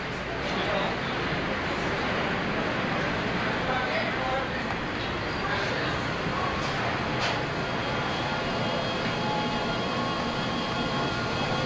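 Footsteps walk along a hard floor.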